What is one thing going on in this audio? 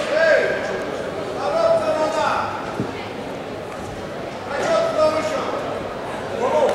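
A man speaks firmly nearby in a large echoing hall.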